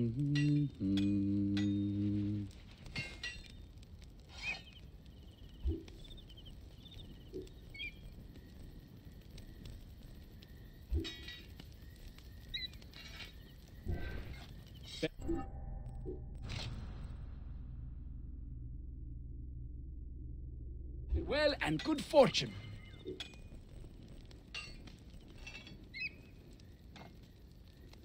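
Menu selection sounds click and chime in quick succession.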